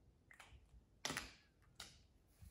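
A marker cap pops off with a sharp snap.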